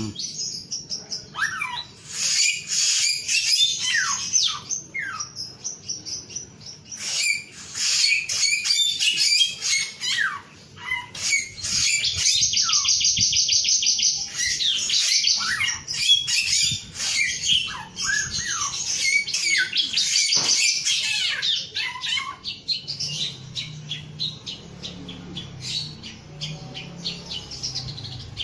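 A small songbird sings a long, fast, twittering song with rapid trills close by.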